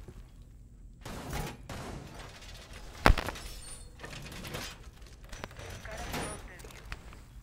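Heavy metal panels clank and bang loudly into place.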